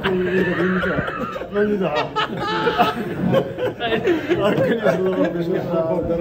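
Several men laugh together.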